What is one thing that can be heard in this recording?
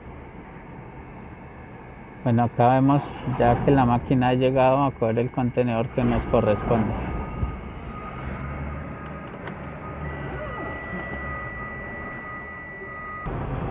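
A container handler's engine runs nearby.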